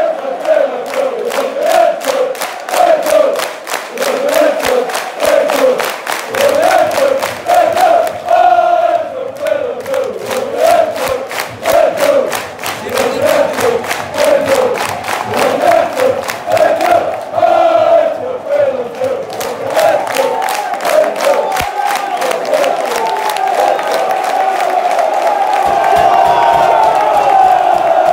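A large crowd of men and women sings a chant together in a stadium.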